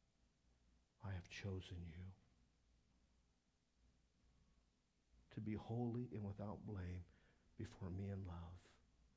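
A middle-aged man speaks calmly through a microphone, pausing between phrases.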